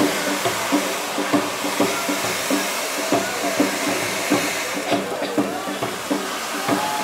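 A fireworks fountain hisses and roars steadily, close by.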